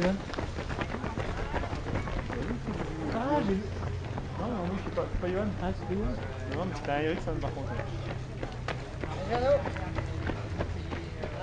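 Spectators at the roadside shout and cheer on passing runners.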